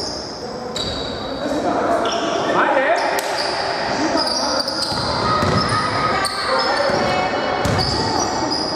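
Sneakers squeak sharply on a hard court floor in an echoing hall.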